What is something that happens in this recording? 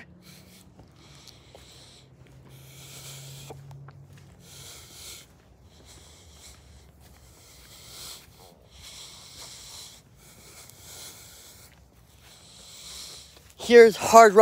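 Fabric rustles right against the microphone.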